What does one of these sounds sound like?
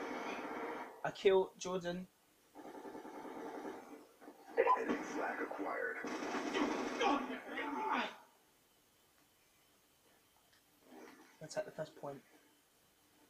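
Gunfire from a video game plays through a television speaker.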